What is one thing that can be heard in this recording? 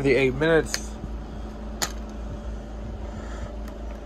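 A plastic disc case snaps open with a click.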